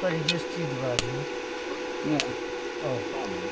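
An electric welder crackles and sputters in short bursts.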